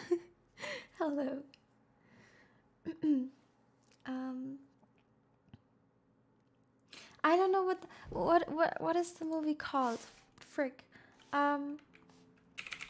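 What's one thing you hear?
A young woman talks and giggles softly into a close microphone.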